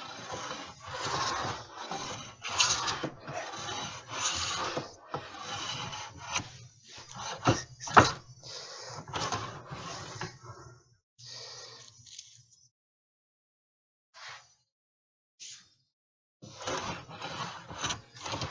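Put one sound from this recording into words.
A hand plane shaves wood in repeated scraping strokes.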